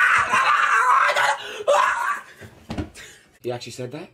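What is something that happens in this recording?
A body thuds onto a couch.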